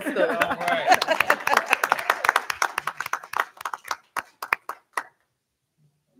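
A crowd applauds in a hall.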